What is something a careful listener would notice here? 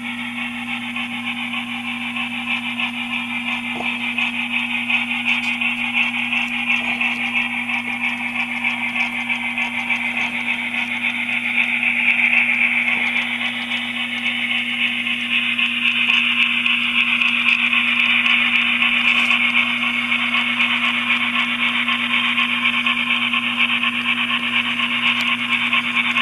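A model steam locomotive chuffs steadily as it approaches and passes close by.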